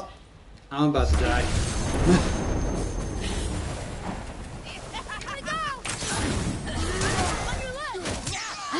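A video game's battle sounds crash and roar loudly.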